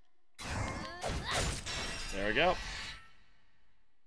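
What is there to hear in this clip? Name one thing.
Fantasy battle sound effects whoosh and crash from a video game.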